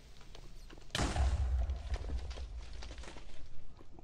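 A loud explosion booms with a deep rumble.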